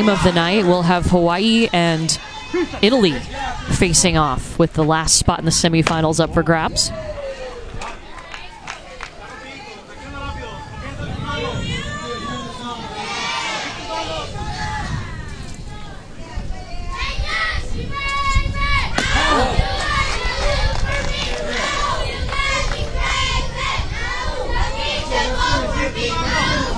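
A crowd of young girls chants and cheers loudly outdoors.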